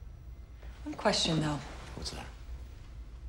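A man speaks calmly and quietly nearby.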